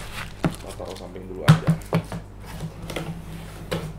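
A cardboard box lid thumps shut.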